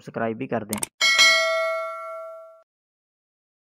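A bright bell chimes once and rings out.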